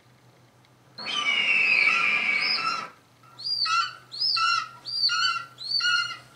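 Large flying creatures screech loudly, over and over.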